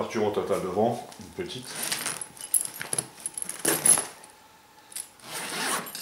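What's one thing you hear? A zipper rasps open on a bag.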